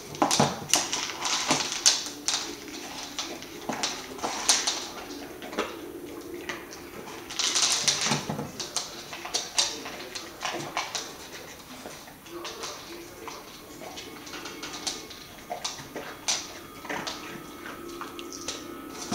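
A dog's claws click on a wooden floor.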